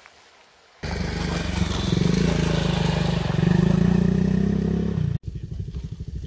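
Water splashes under motorcycle tyres.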